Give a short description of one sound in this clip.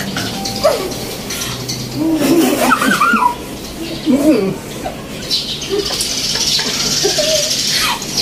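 A group of people laugh together nearby.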